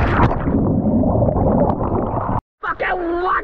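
Water bubbles and churns underwater.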